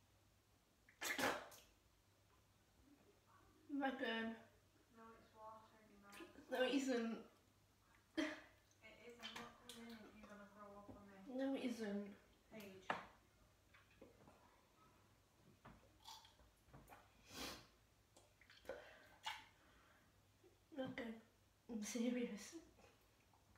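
A young woman retches and gags close by.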